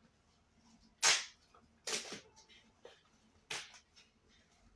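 A plastic toy clacks sharply in a teenage boy's hands.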